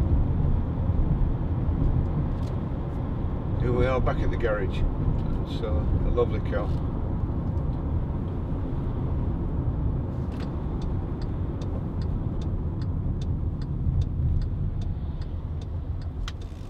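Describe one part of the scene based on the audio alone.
A car engine hums steadily with road rumble while driving.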